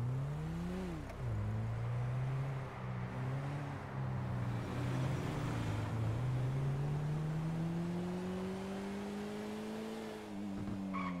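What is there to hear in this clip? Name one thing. A car engine hums and revs up and down as it drives.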